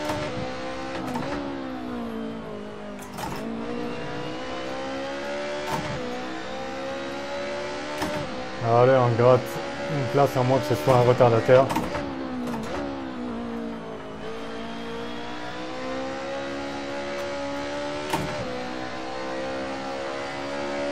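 A racing car engine drones loudly, rising and falling in pitch as it shifts gears.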